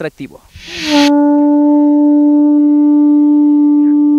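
A young man blows a conch shell, sounding a long steady note.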